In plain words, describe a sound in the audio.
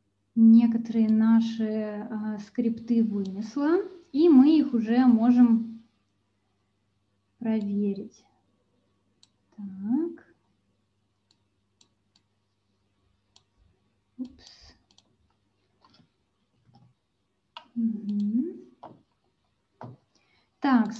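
A young woman speaks calmly through an online call, pausing often.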